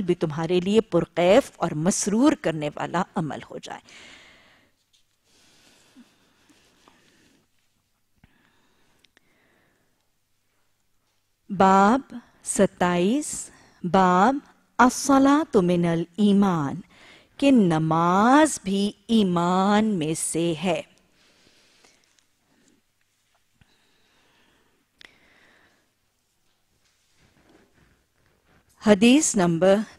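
A woman chants melodically into a microphone, pausing between phrases.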